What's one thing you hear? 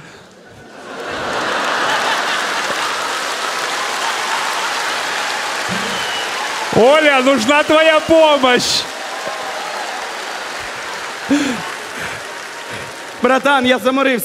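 An audience laughs and applauds in a large hall.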